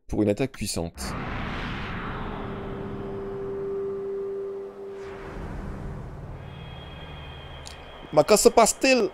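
A deep roaring whoosh of flames swells and slowly fades.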